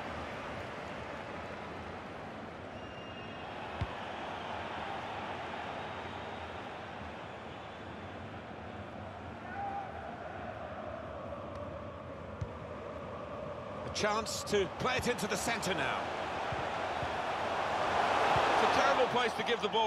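A large stadium crowd roars steadily, swelling louder toward the end.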